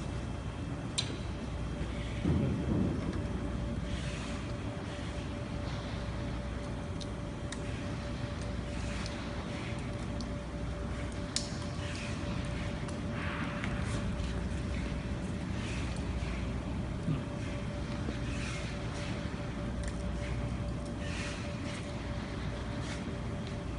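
Metal parts clink and tap.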